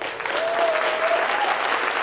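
Hand drums are played fast on stage.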